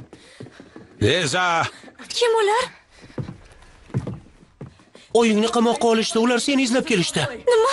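A young man shouts angrily up close.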